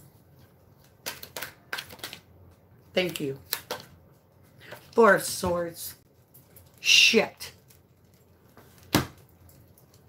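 Playing cards riffle and flick as they are shuffled.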